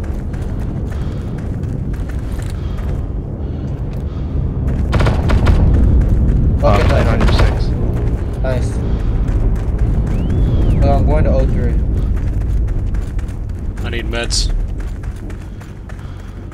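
Footsteps run over grass and leaves.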